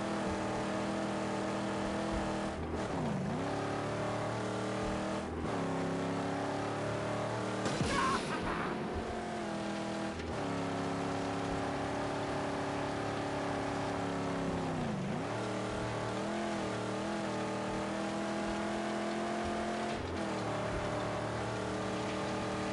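Tyres crunch over sand and gravel.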